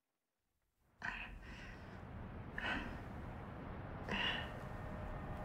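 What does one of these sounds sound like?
A young woman groans softly.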